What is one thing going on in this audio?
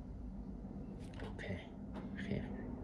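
A fingertip taps softly on a touchscreen.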